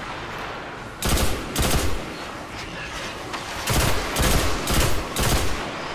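A gun fires in loud bursts.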